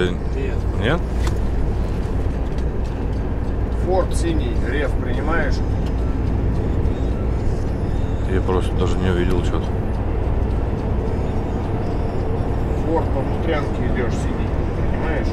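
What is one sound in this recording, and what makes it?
A truck engine drones steadily from inside the cab.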